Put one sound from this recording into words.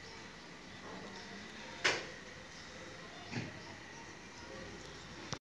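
Small kittens chew and lap food softly nearby.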